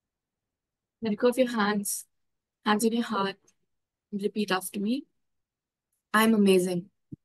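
A young woman speaks calmly in short phrases, close by.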